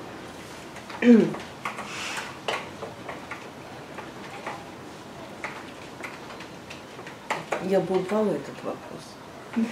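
A middle-aged woman speaks calmly nearby, in short bursts.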